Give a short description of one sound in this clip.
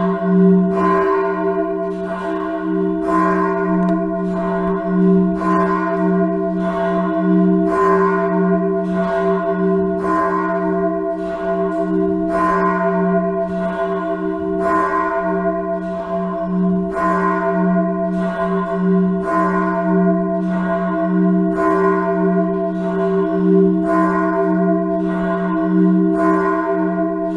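A large church bell swings and tolls steadily, with a deep, ringing hum between strikes.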